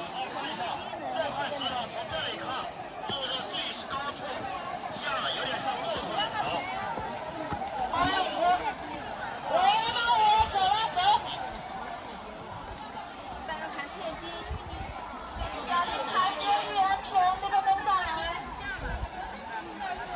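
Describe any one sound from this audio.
Footsteps shuffle on a paved path.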